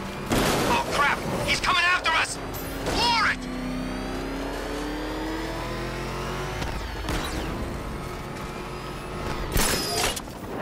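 A powerful car engine roars and revs at speed.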